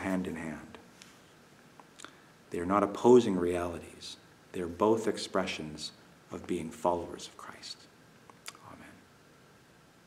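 A middle-aged man speaks calmly and close to a microphone in a room with slight echo.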